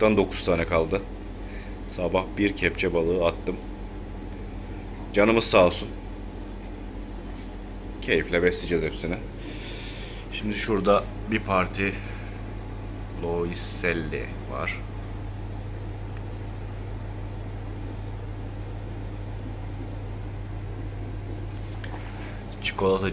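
An aquarium air filter bubbles and hums steadily.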